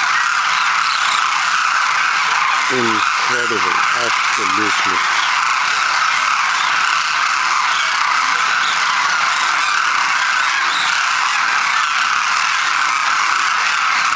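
A huge flock of cranes calls in a constant dense chorus.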